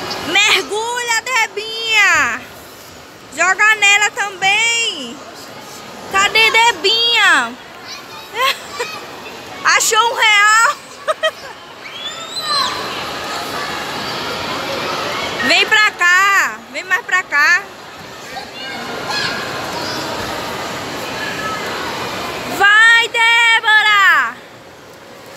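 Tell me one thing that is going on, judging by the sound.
A young girl squeals and sings in a high voice close by.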